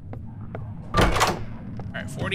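A wooden door swings open with a knock.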